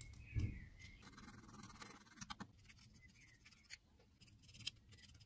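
A file rasps against plastic.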